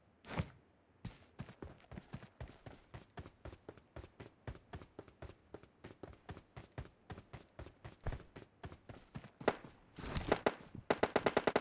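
Footsteps run quickly and steadily.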